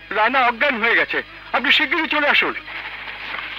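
A man wails and sobs loudly.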